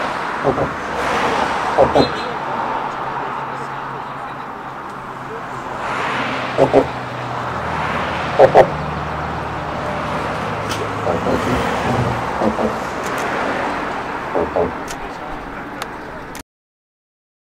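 Footsteps of a group walk on pavement outdoors.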